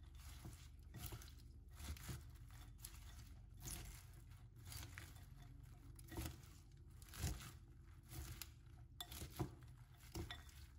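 Tongs clink against a glass bowl.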